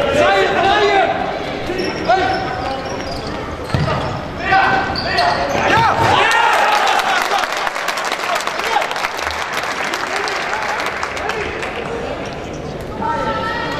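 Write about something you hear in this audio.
A ball is kicked with sharp thuds.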